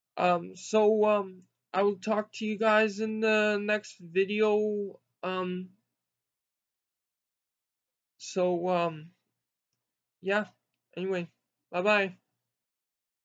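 A young man talks calmly close to a microphone, pausing now and then.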